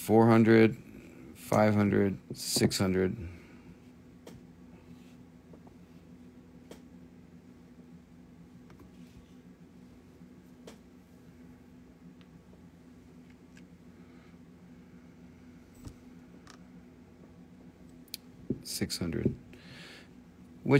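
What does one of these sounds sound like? Small stones click softly as they are set down.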